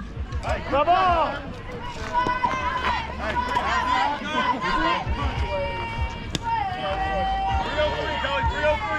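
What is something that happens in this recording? Young women shout and cheer across a field outdoors.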